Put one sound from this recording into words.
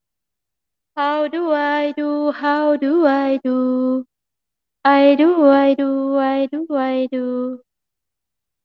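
A young woman sings into a close microphone, holding long notes.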